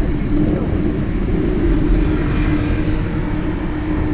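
A motorcycle engine putters past close by.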